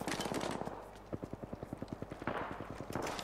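Rapid gunshots fire in a quick burst.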